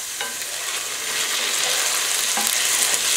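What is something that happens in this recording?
Dry rice pours into a metal pot.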